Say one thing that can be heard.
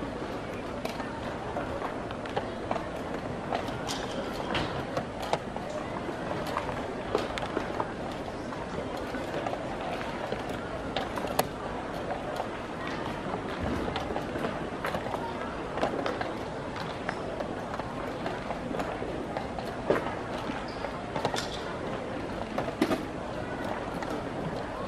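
Wooden chess pieces are set down on a wooden board at blitz pace.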